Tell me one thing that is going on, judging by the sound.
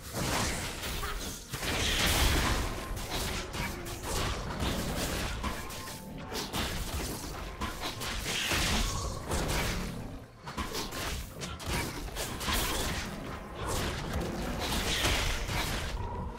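Game spell effects whoosh and crackle in a fight.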